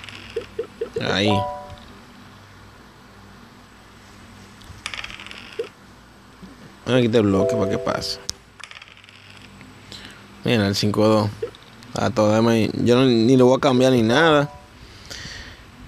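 Game dice rattle and roll.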